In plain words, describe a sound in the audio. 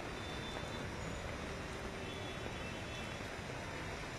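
Floodwater splashes as a car drives through it.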